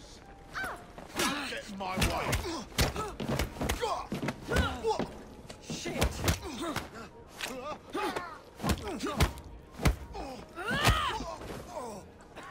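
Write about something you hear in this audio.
Fists thud hard against bodies in a brawl.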